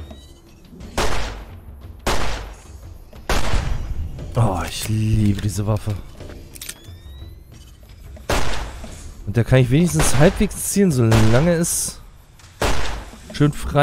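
A revolver fires loud, sharp shots.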